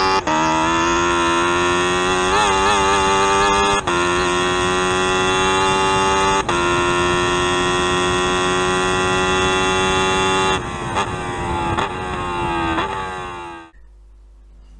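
A race car engine roars at high revs and then winds down.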